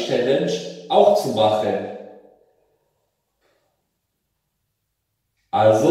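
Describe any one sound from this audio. A young man speaks calmly close by, in a small echoing room.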